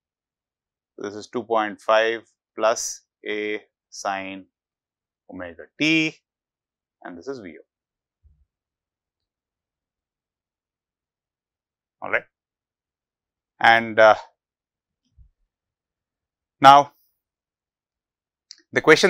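A middle-aged man speaks calmly into a close microphone, with pauses.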